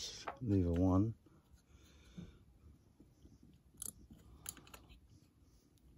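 Small metal lock parts click and scrape as they are moved by hand.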